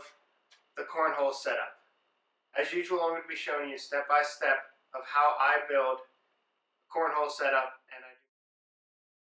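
A young man talks calmly to the listener, close by.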